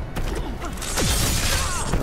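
Metal tendrils whip and lash with sharp swooshes.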